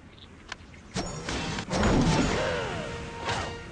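A cartoon bird squawks as it is flung from a slingshot.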